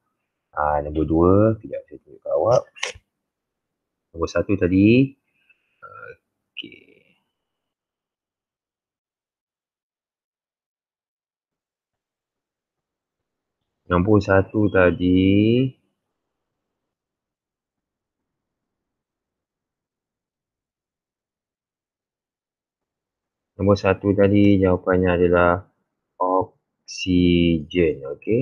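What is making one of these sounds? A man speaks calmly through a microphone in an online call, in bursts with long pauses.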